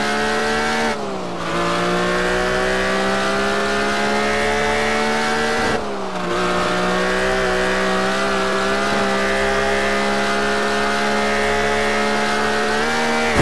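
A car engine roars at high revs, dropping in pitch at each gear change.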